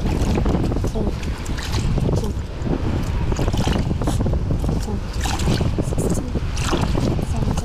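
Water sloshes and splashes in a bucket as a hand stirs it.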